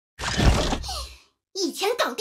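A blade slashes with a heavy booming impact.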